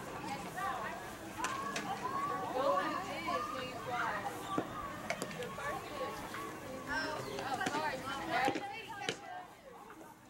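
Young female players chatter and call out across an outdoor field.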